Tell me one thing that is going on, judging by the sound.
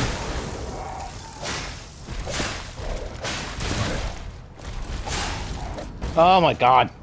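Blades swing and clash in a fight.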